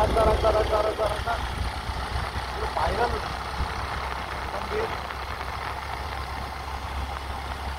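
A car drives along a road with a low, steady rumble.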